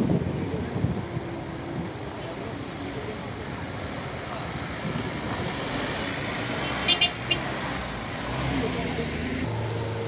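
A truck engine rumbles as it drives slowly past on a dirt road.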